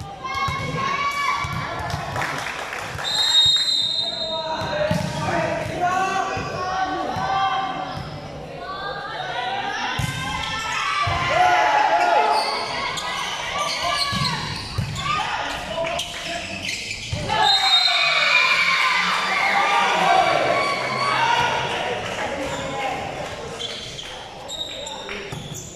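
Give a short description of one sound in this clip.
A crowd of young women cheers and chatters in a large echoing hall.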